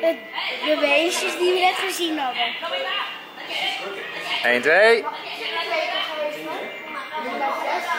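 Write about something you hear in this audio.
A young boy talks close by, with animation.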